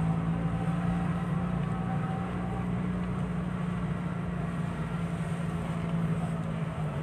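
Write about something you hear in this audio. A car engine hums steadily from inside the car as it drives along a street.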